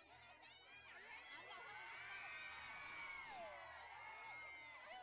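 Women shout and cheer loudly together.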